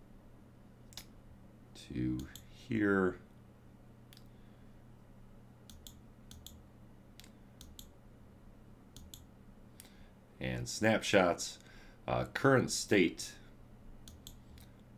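Mouse clicks tick now and then.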